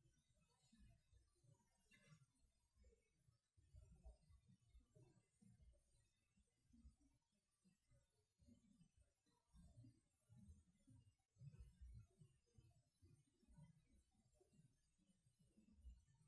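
An elderly man reads aloud calmly, heard through a microphone in an echoing room.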